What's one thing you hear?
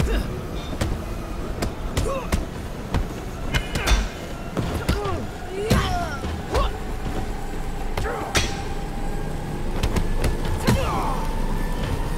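Punches and kicks land with sharp thuds and smacks.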